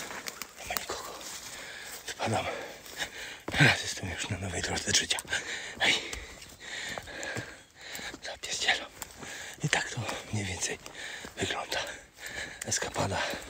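A man talks cheerfully, close to the microphone.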